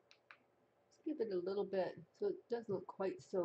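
An older woman speaks calmly close to the microphone.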